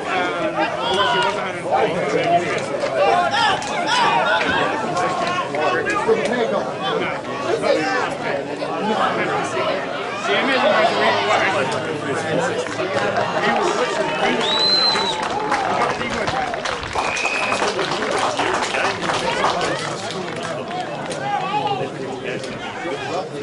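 Spectators cheer and shout from a distance.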